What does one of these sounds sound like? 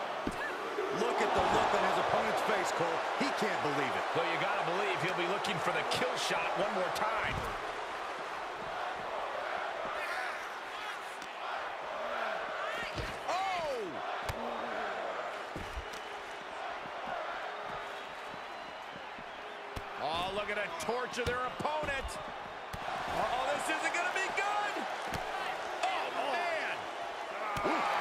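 A crowd cheers and chants loudly in a large arena.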